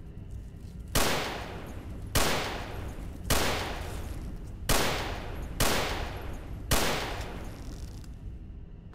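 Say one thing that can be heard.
Gunshots fire one after another, each ringing out with a metallic echo.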